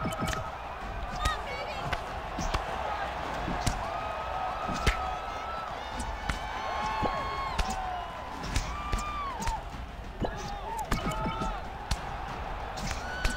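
A crowd cheers and roars steadily.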